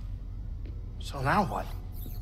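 A man speaks over a microphone, reacting to the game.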